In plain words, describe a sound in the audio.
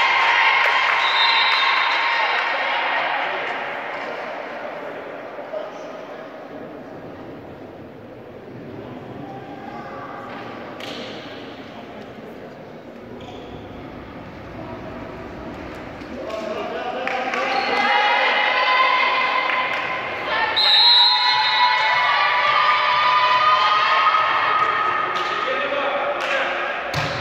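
A crowd of spectators cheers and chants in a large echoing hall.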